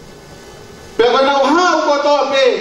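A man sings loudly into a microphone, heard through a loudspeaker.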